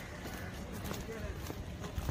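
Footsteps walk on a paved path.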